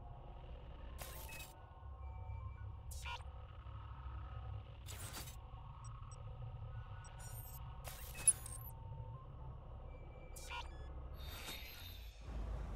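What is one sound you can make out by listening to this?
Short electronic menu clicks sound now and then.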